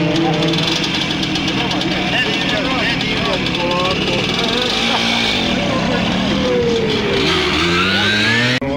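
A small two-stroke motorcycle engine runs loudly close by, revving up and down.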